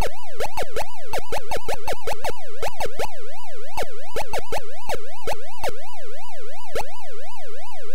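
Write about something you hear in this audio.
An electronic game siren warbles steadily up and down.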